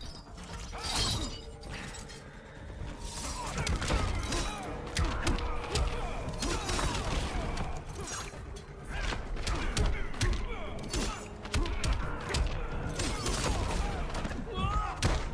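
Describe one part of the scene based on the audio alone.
Punches and kicks land with heavy thuds and sharp cracks.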